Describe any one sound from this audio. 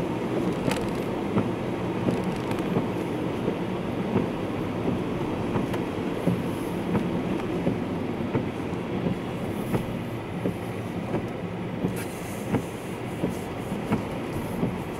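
A car's tyres hiss on a wet road, heard from inside.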